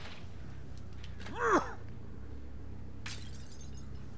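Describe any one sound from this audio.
A glass bottle is thrown and shatters.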